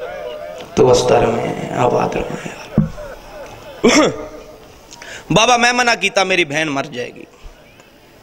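A young man recites with fervour into a microphone in an echoing hall.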